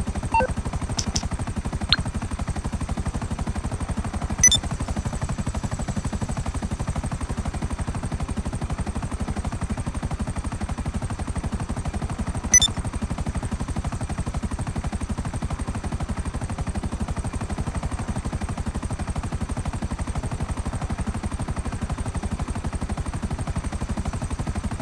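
A helicopter's rotor thuds rapidly and steadily overhead.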